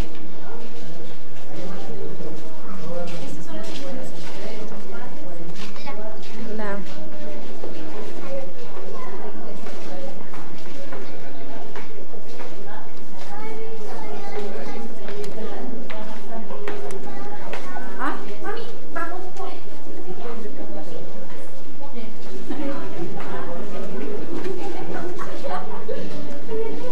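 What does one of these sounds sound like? Footsteps tap on a tiled floor.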